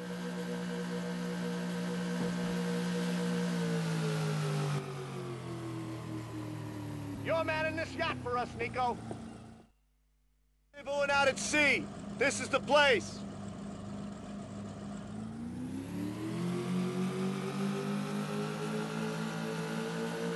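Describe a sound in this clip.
A motorboat engine drones, dropping in pitch as it slows and then rising again as it speeds off.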